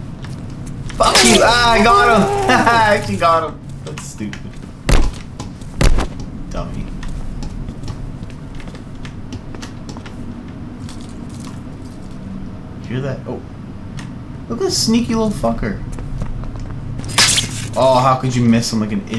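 A young man talks and laughs into a close microphone.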